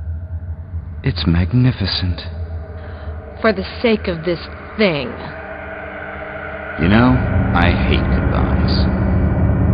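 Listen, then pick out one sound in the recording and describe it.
A man speaks calmly through a headset radio.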